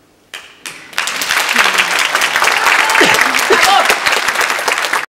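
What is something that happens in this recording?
A grand piano plays in a large, echoing hall.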